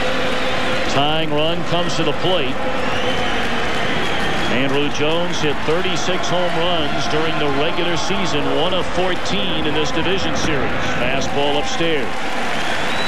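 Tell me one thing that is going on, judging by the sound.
A large crowd chants in unison.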